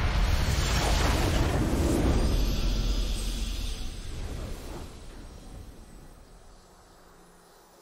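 A triumphant fanfare swells and then fades.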